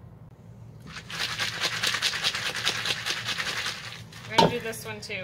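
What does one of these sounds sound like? Dry seeds rattle inside a gourd as it is shaken.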